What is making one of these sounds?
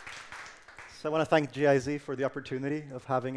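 A man speaks to an audience through a microphone in a large hall.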